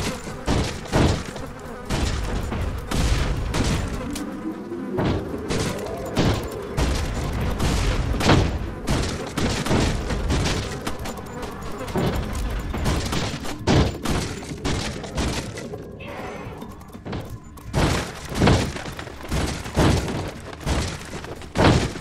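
Gunshots fire repeatedly with sharp bangs.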